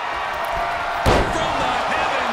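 A body slams down onto a wrestling ring mat with a heavy thud.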